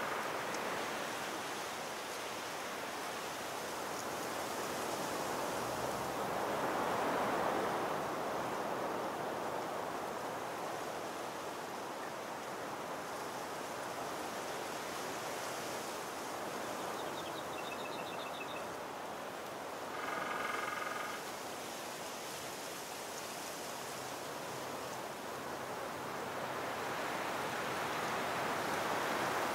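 Wind rushes steadily through trees outdoors.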